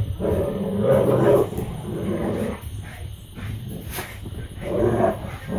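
Paws scuffle and thump on a carpeted floor.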